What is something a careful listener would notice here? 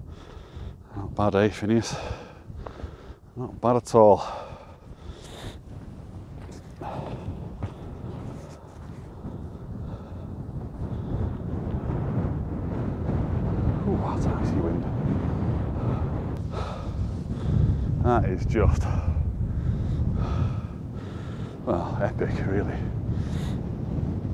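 A man speaks casually close to the microphone, outdoors in wind.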